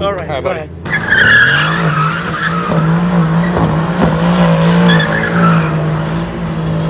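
Tyres squeal as a car spins on pavement.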